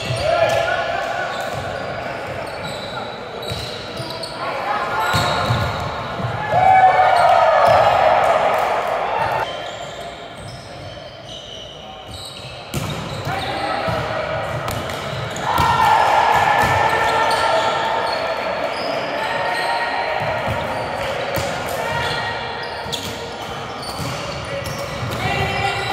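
Young men shout and call out to each other across a large echoing hall.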